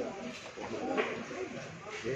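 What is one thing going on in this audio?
Billiard balls click together.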